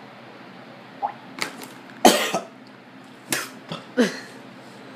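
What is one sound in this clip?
A young man gasps and coughs after a drink.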